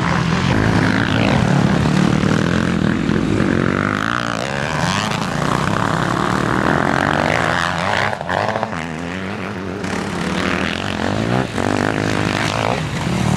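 Motorcycle engines rev and whine loudly outdoors.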